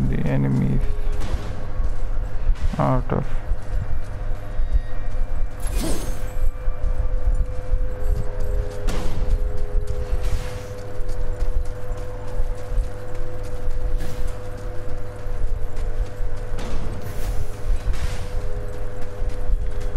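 Heavy footsteps thud on the ground at a run.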